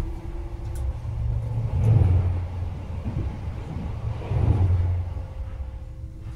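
Another train rushes past in the opposite direction with a loud whoosh.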